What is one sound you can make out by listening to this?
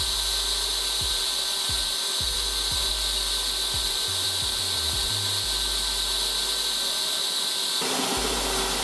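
A power drill whirs as it bores into wood.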